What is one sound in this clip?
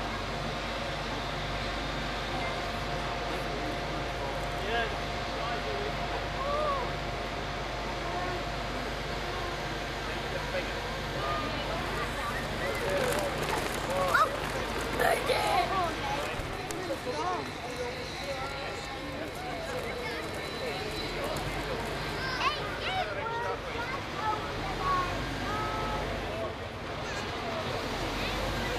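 A crane's engine hums steadily outdoors.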